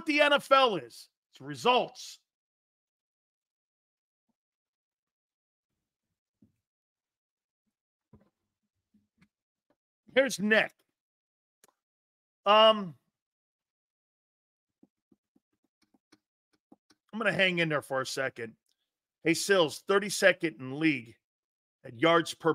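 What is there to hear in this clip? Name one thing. A middle-aged man talks with animation into a close microphone, pausing often.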